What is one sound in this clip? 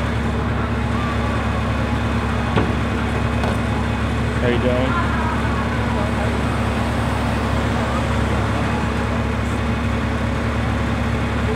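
A crowd murmurs outdoors along a busy street.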